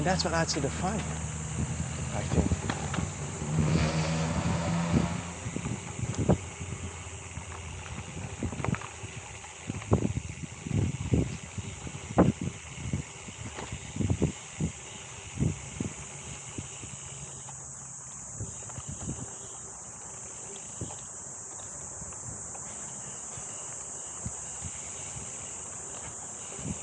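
Wind rushes steadily past, close by.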